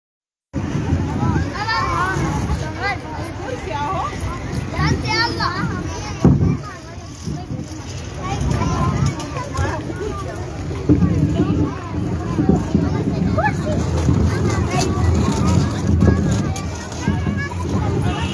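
Young children talk and call out nearby.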